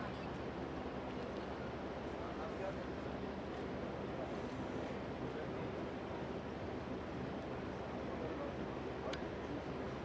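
An elderly man talks calmly with another man.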